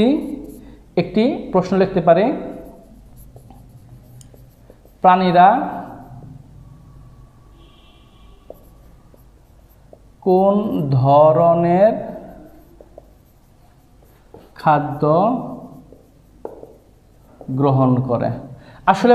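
A man speaks calmly in short phrases, close to the microphone.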